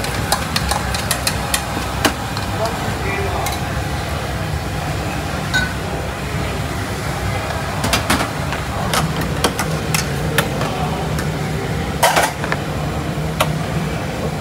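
A ladle clinks against metal bowls.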